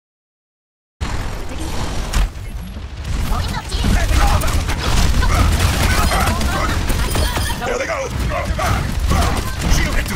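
Guns fire in rapid bursts in a video game.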